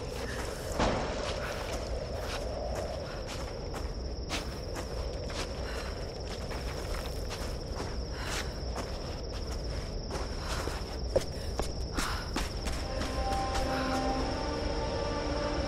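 Footsteps crunch on snow and gravel.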